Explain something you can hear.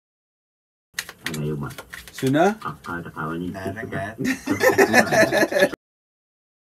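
People talk and laugh together.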